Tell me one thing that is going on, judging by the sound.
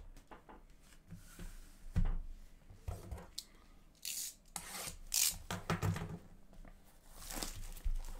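Cardboard boxes scrape and knock as they are handled.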